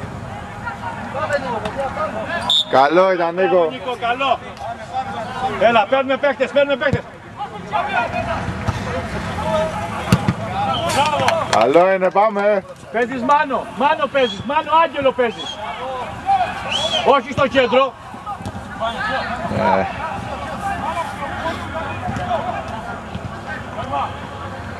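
Men shout to one another across an outdoor pitch.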